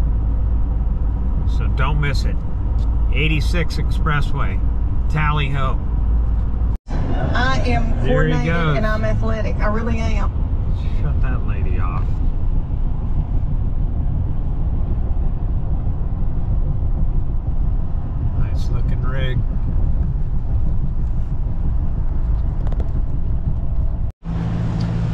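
A car engine and tyres drone steadily on a highway.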